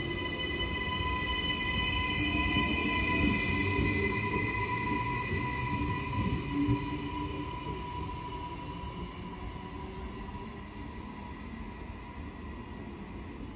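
A train's electric motors whine steadily and slowly fade.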